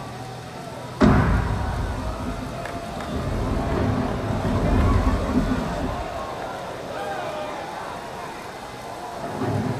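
Loud music with a heavy beat plays through loudspeakers.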